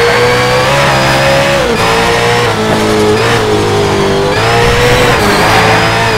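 A racing car engine roars at high revs, shifting up and down through the gears.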